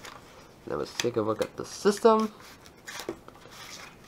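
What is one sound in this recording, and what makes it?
Cardboard rustles and scrapes as a box is opened.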